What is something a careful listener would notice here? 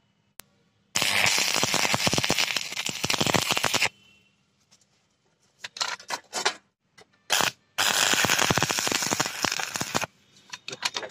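An arc welder crackles and sizzles loudly in bursts.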